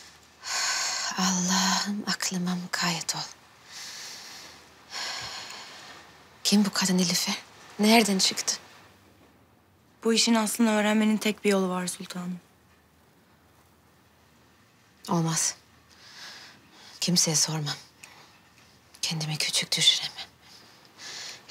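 A woman speaks softly and anxiously nearby.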